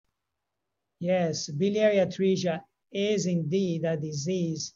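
An older man speaks calmly and clearly into a microphone.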